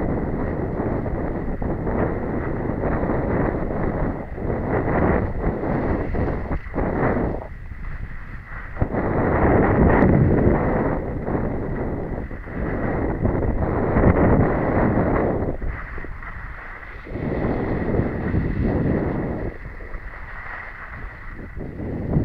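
Wind rushes loudly past, buffeting in gusts.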